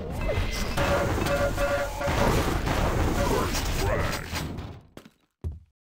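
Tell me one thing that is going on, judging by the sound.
An electric beam weapon crackles and buzzes.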